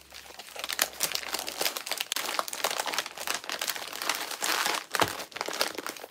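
A padded paper envelope rustles as something slides into it.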